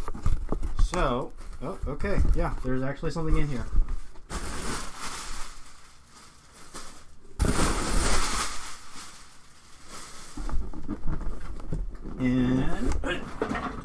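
Cardboard scrapes and thumps as items are handled in a box.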